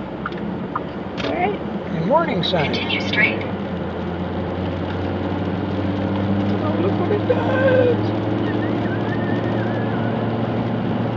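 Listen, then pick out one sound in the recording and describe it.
Tyres rumble over a gravel road.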